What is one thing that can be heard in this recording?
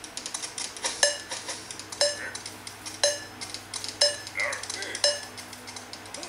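A mobile game beeps a countdown once a second.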